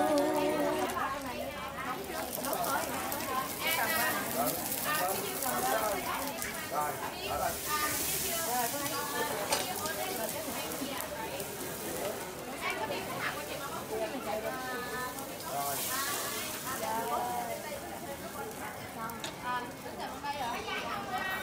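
Women talk with animation close by.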